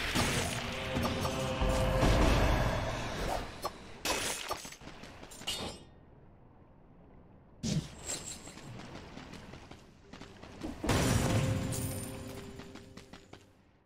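Game explosions boom and crackle.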